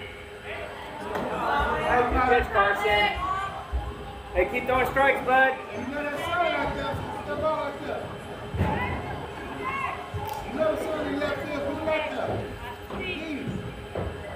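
Young women shout and cheer outdoors.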